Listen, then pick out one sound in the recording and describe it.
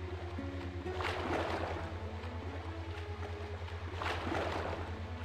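Water splashes in bursts as someone wades and swims through it.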